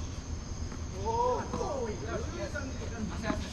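A man calls out from a distance outdoors.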